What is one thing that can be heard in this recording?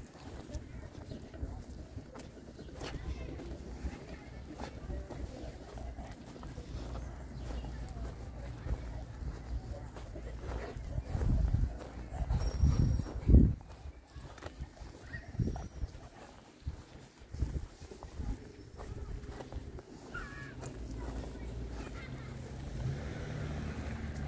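Wind rumbles across an outdoor microphone in gusts.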